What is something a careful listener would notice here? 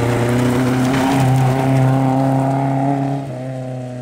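Tyres crunch and spray gravel on a dirt road.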